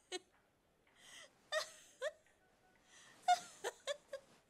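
A woman gasps and whimpers in pain.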